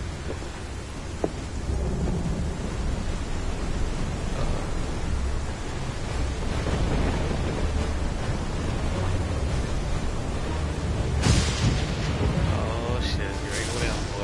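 A strong wind roars outdoors.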